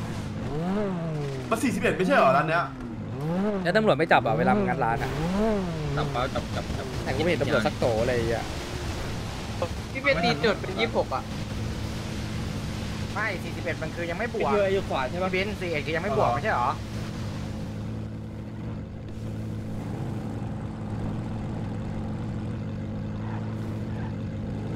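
A sports car engine idles with a steady low rumble.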